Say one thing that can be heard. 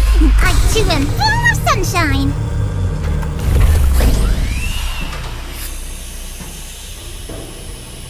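A deep machine hum rumbles and slowly fades.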